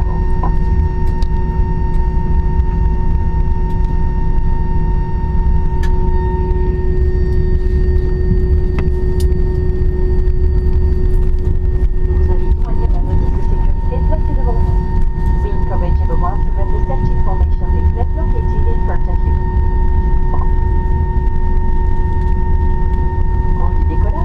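Jet engines roar steadily and loudly.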